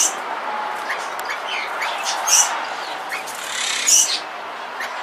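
Parrots chirp and whistle in short, sharp bursts close by.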